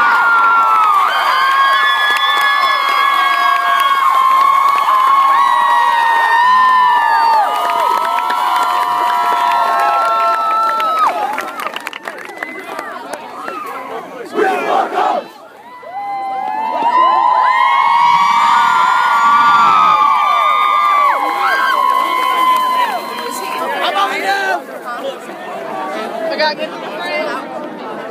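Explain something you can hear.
A large crowd of teenagers and adults cheers and shouts close by outdoors.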